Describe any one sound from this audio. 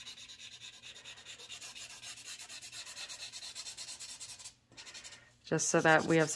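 A pen scratches on paper in quick, rhythmic strokes.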